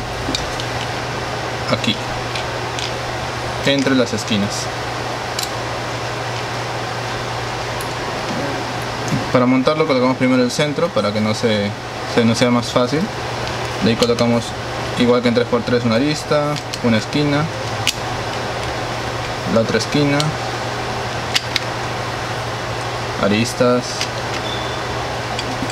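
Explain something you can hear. Plastic puzzle cubes click and clack as hands twist them.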